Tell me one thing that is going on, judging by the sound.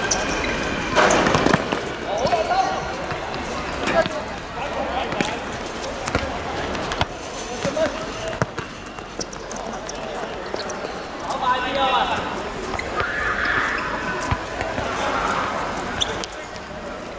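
A football is kicked on a hard court.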